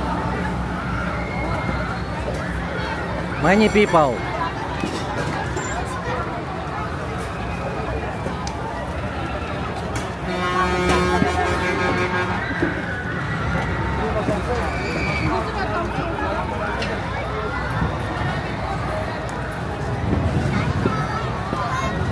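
Music plays from loudspeakers at a fairground ride.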